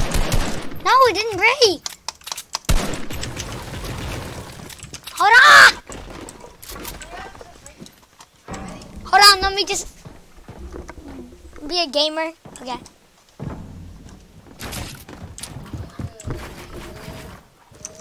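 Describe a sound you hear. A boy talks with animation, close to a microphone.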